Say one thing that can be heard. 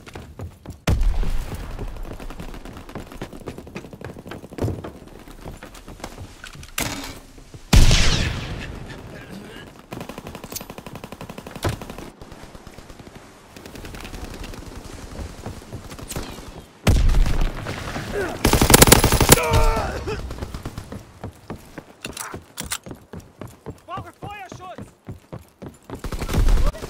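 Footsteps thud on a wooden deck.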